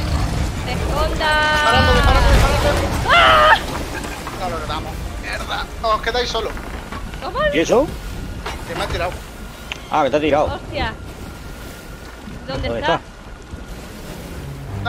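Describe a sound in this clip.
Ocean waves roll and wash steadily.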